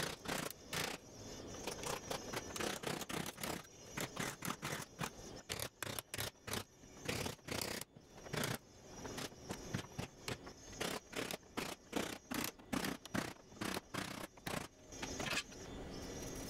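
A hammer taps repeatedly on sheet metal.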